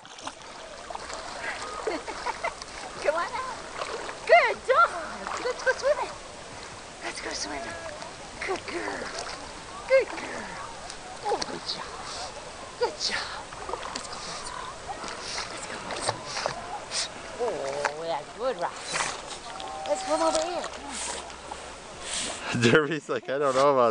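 Dogs paddle and splash through water close by.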